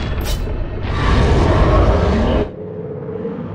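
A loud rushing whoosh swells and then cuts off abruptly.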